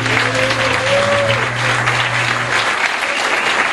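A small band of guitars and a trumpet plays a final held chord.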